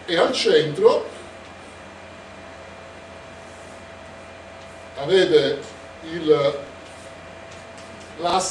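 A man speaks calmly, close by, in short phrases.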